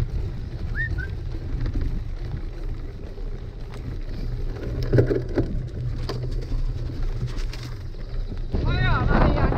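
Bicycle tyres roll and crunch over a dirt trail.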